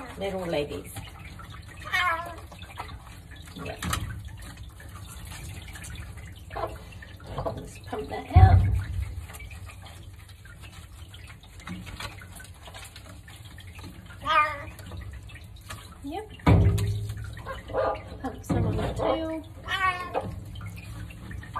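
A cat meows loudly and repeatedly.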